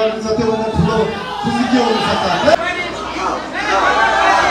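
A young man raps loudly into a microphone over a loudspeaker.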